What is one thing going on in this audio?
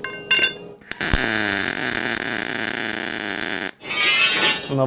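An electric welder crackles and hisses steadily.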